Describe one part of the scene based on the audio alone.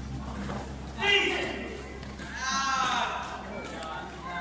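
A man shouts loudly in an echoing hall.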